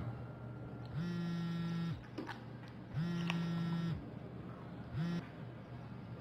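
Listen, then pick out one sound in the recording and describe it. A mobile phone rings in short repeated bursts.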